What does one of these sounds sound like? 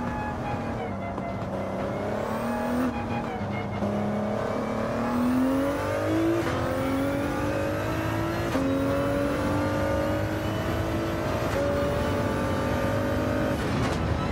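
A twin-turbo V6 race car engine revs hard and climbs in pitch, dropping sharply at each upshift.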